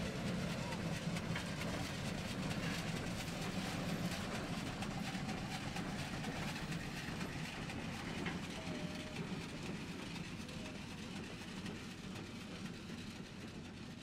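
Steel wheels clank and rattle on the rails.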